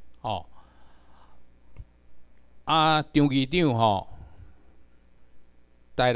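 An elderly man speaks slowly into a microphone, heard through loudspeakers in a large room.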